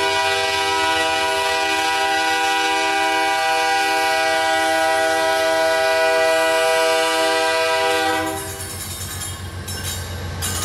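A diesel locomotive engine rumbles as it approaches.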